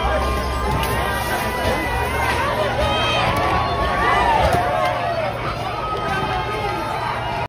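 A crowd of people shouts and talks excitedly outdoors.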